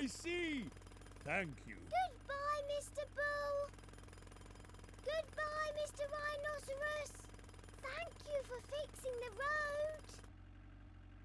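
A young girl talks cheerfully.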